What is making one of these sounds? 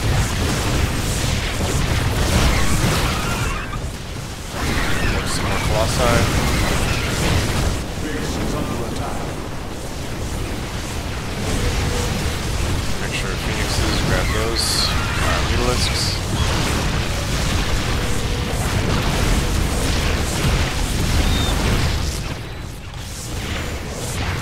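Laser weapons fire and crackle in a loud battle.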